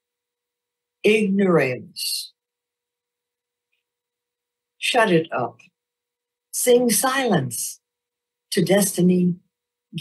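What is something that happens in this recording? A middle-aged woman reads aloud calmly into a microphone, heard through an online call.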